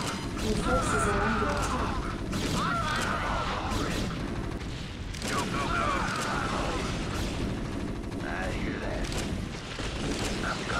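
Video game battle sounds crackle and boom.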